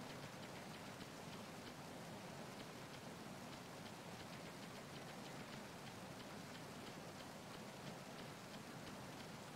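Footsteps tap on wet metal.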